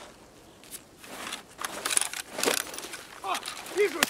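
Footsteps crunch on hard ground.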